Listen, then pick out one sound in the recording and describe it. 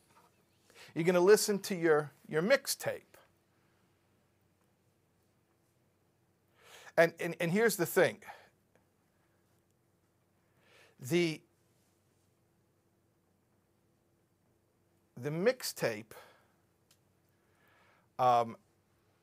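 A middle-aged man speaks with animation into a microphone, in short bursts with pauses.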